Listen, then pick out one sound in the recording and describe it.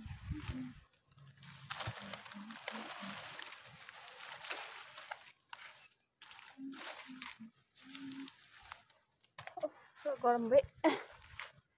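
Leaves rustle and swish as a bundle of long leaves is gathered and handled.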